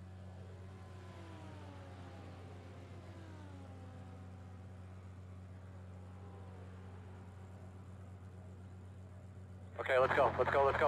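A race car engine idles with a low, steady hum.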